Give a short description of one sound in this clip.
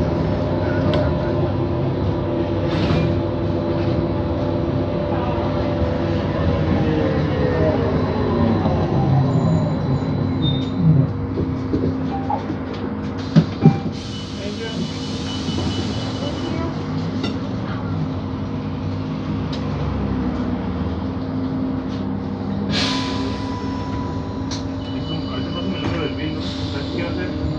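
Passing traffic rumbles outside the window.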